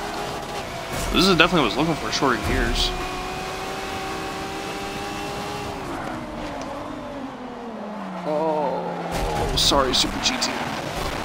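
Car tyres screech while cornering.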